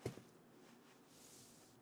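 A hand rustles softly against a cloth bandage.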